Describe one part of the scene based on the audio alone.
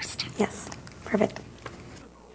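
A woman speaks nearby in a calm, friendly voice.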